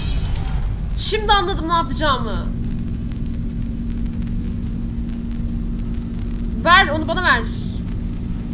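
A young woman cries out loudly close to a microphone.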